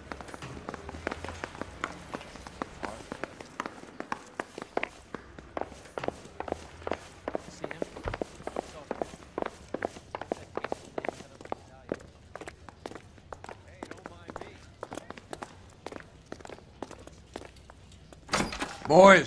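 Footsteps tap quickly on a hard floor and stairs.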